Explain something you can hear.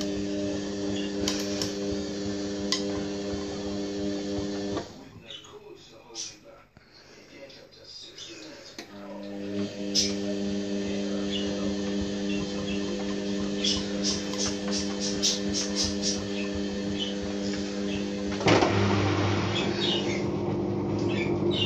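A washing machine hums as it runs.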